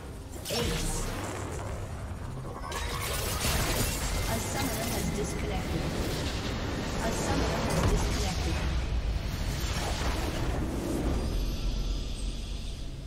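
Magic spells crackle and clash in a busy video game battle.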